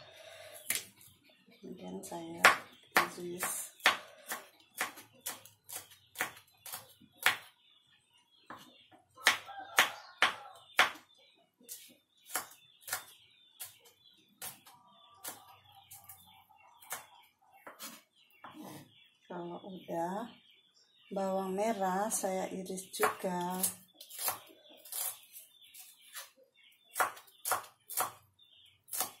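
A knife chops on a wooden board in quick, sharp knocks.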